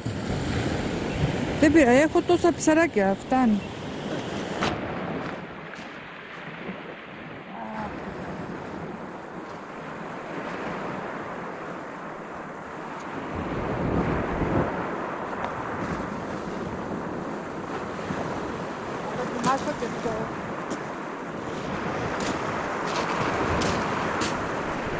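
Waves wash onto a pebble beach.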